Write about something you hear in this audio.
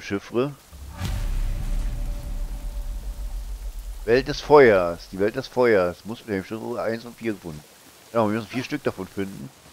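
A waterfall rushes steadily nearby.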